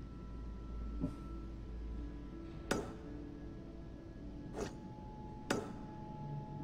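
Soft interface clicks sound as menu items are selected.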